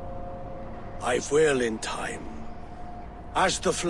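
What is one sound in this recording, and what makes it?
A man speaks slowly in a low, grave voice.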